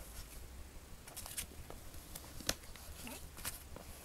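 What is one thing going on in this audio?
A foil card wrapper crinkles.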